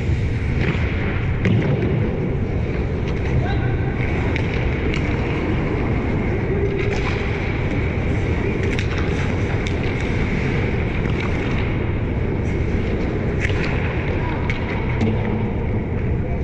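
Skate blades scrape and hiss on ice.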